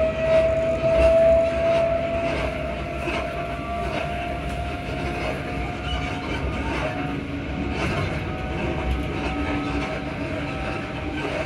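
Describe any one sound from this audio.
Train wheels squeal and hum on the rails.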